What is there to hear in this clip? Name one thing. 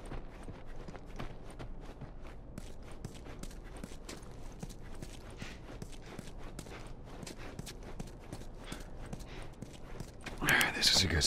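Footsteps fall on a hard floor strewn with debris.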